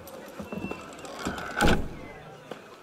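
A hand thumps against a wooden carriage door.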